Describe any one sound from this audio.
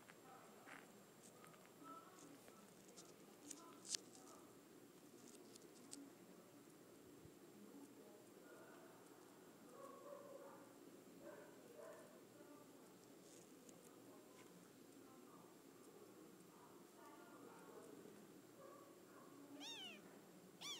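Small kittens squeak and mew faintly close by.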